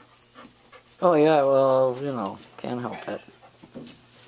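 A puppy whines and yelps loudly.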